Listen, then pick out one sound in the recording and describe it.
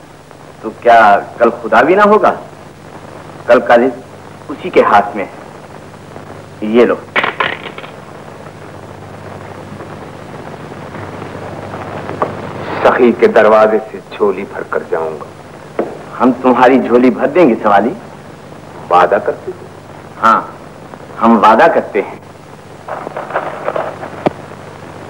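A man speaks with animation, in short bursts.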